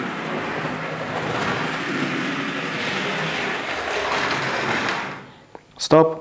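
A model train rumbles along its tracks.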